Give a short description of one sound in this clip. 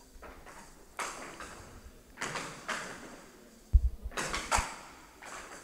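A ball strikes paddles and bangs against the table's wooden sides.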